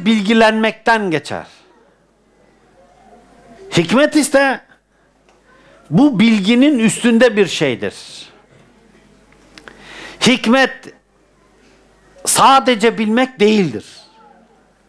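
An elderly man speaks with animation through a headset microphone, pausing between phrases.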